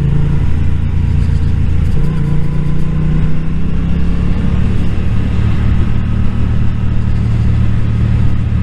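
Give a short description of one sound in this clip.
A motorcycle engine hums steadily close by, shifting pitch as it rides.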